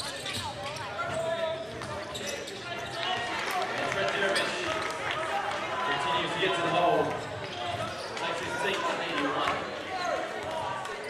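A crowd murmurs and calls out in the stands.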